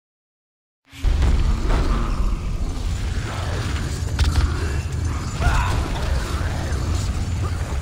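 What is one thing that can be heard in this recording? A sword swishes through the air in a fight.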